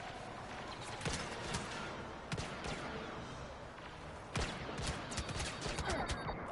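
Blaster rifles fire in quick bursts.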